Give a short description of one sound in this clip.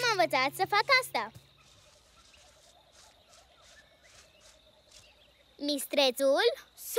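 A young child speaks excitedly, close by.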